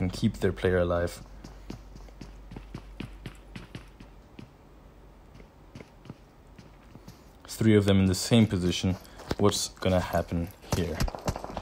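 Footsteps shuffle on sand and dirt.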